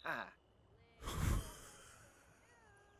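A young man laughs briefly, close to a microphone.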